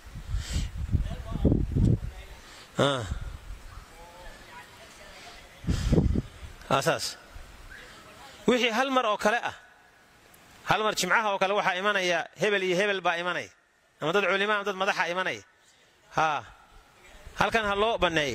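A man speaks with animation into a headset microphone, chanting in a rising and falling voice.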